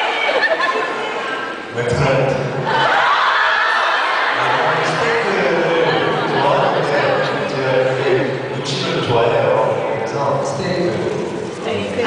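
A young man speaks cheerfully through a microphone over loudspeakers.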